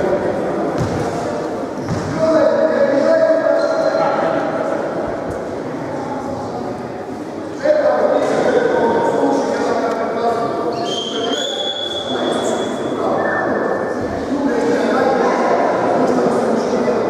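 A crowd of young people chatters loudly in a large echoing hall.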